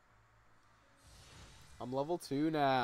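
A bright magical whoosh sounds.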